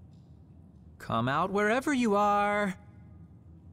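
A young man calls out in a taunting voice.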